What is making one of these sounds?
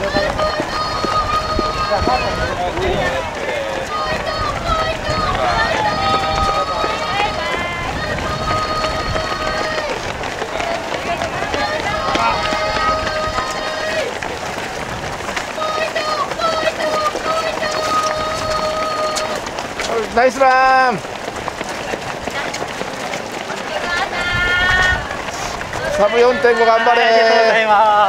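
Many running feet patter steadily on pavement.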